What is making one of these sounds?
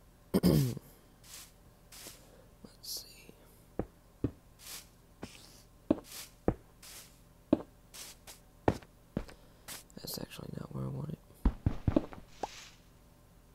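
Stone blocks thud softly as they are placed one after another.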